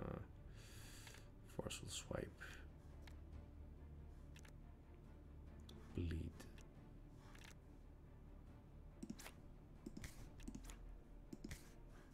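Short game sound effects click and swish as cards are picked.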